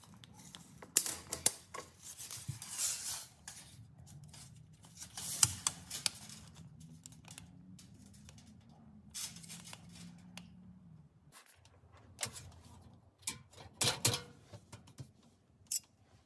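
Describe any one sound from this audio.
A tape measure's blade rattles and clicks against a wall and floor.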